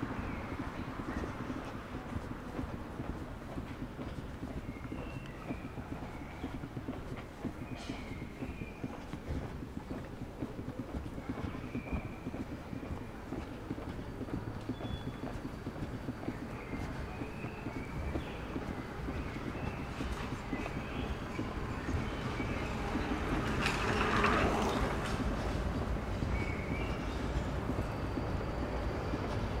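A vehicle drives steadily along a street with a low rumble of tyres and engine.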